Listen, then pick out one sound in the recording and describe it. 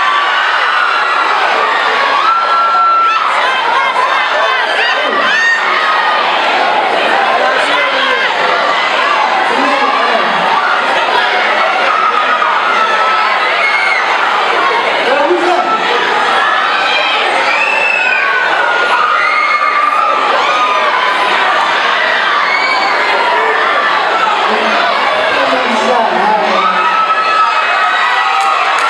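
An audience cheers and screams loudly.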